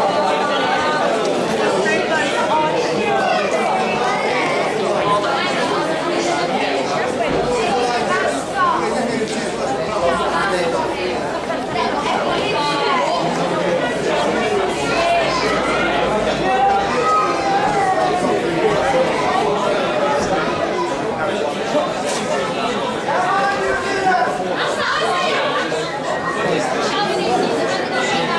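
Several men talk at once outdoors.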